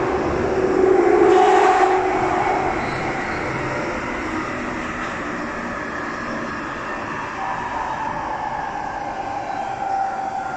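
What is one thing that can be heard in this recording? A subway train rumbles and hums steadily along the tracks.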